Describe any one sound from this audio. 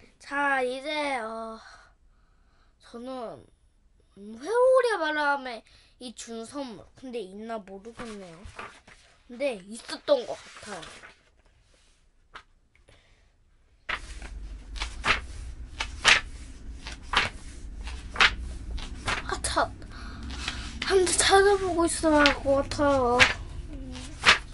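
A young boy speaks close by, in a clear, lively voice.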